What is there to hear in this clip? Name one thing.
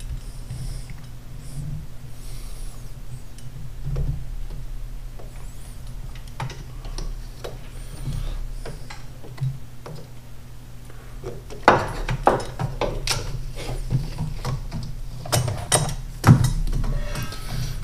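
Metal tools click and clatter against engine parts.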